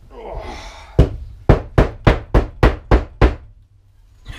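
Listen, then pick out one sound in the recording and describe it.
Wood knocks sharply against wood several times in quick succession.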